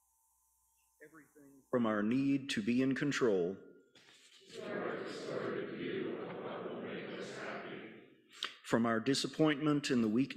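A woman reads aloud through a microphone.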